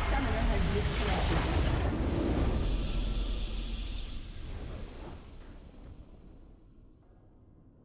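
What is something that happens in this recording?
A game's victory fanfare swells loudly and fades away.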